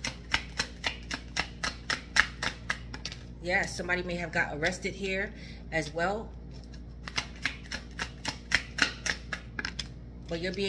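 Playing cards riffle and snap in rapid clicks as they are shuffled.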